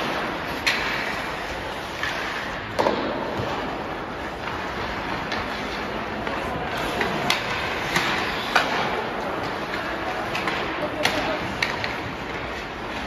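Skates scrape and carve across ice in a large echoing rink.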